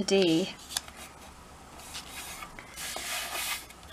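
Hands press and rub card flat with soft brushing.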